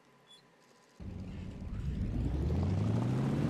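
An aircraft engine starts up and hums, rising in pitch.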